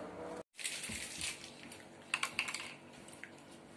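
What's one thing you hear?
Plastic candy wrappers crinkle as they are unwrapped.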